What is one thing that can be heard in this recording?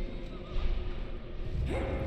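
Large wings beat with deep, heavy whooshes.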